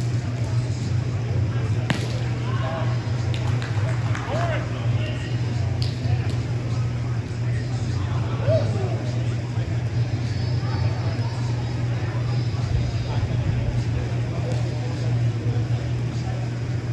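A ball bounces off a small net with a springy snap.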